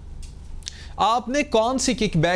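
A man speaks calmly and clearly into a microphone, like a news presenter.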